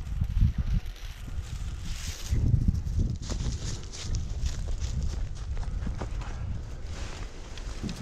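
Dry grass rustles and crackles close by.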